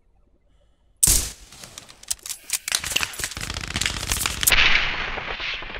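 A rifle fires with a sharp, loud crack.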